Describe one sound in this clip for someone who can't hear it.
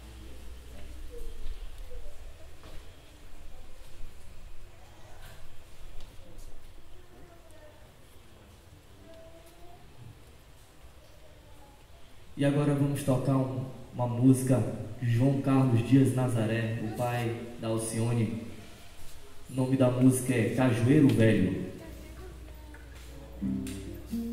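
A small band plays soft music nearby.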